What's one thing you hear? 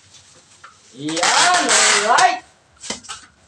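Packing tape screeches as it is pulled off a roll.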